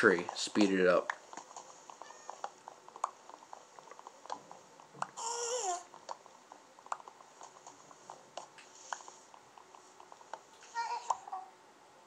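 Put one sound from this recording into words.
Game blocks break with soft crunching sounds.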